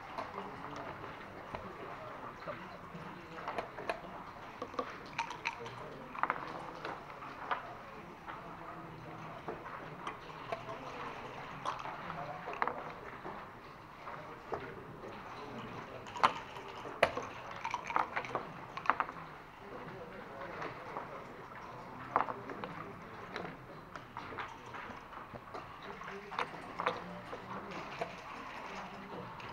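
Backgammon checkers click and clack against the board.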